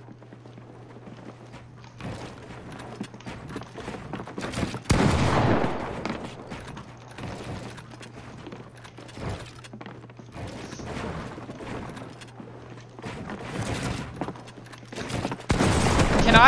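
Wooden building pieces clack into place in quick bursts.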